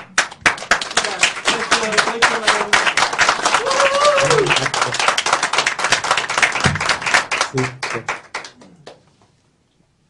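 A crowd claps hands in a fast rhythm, heard through an online call.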